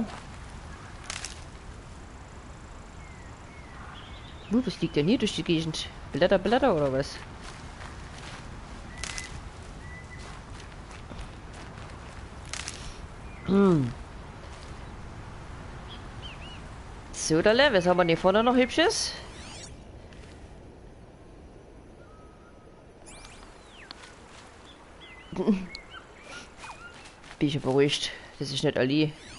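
Footsteps rustle through grass and dry ground.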